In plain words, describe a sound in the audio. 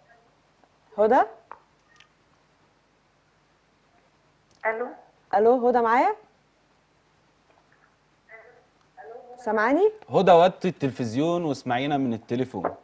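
A young woman speaks through a microphone in short, friendly phrases, with pauses in between.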